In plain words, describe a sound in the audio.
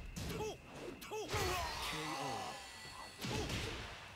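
Punches and kicks thud as two fighters clash.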